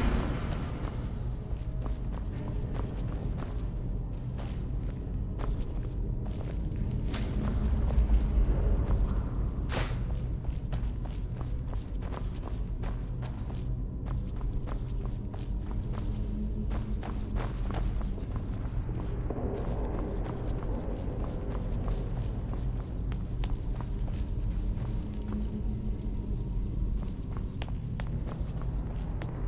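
Footsteps scuff steadily on a stone floor.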